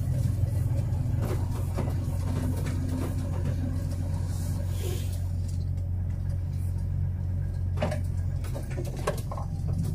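A car passes by.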